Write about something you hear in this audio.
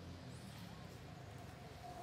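A monkey splashes while swimming in water.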